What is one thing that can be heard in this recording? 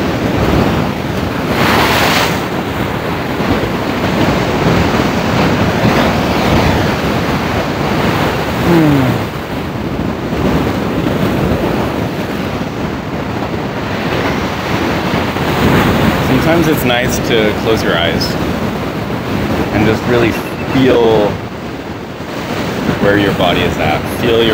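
Waves crash and roll onto rocks nearby.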